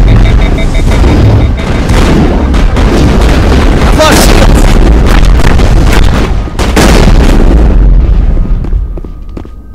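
Gunfire and energy blasts roar loudly in a game battle.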